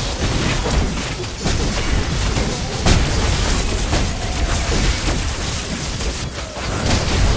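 Magic blasts and sword hits clash in a fast, busy battle.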